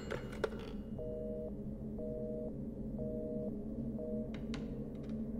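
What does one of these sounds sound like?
A busy signal beeps in short, even pulses through a telephone handset.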